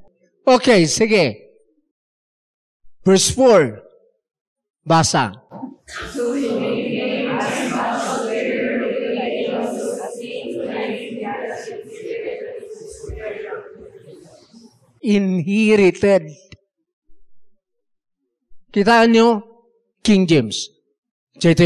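An elderly man preaches with emphasis into a microphone, in short bursts with pauses.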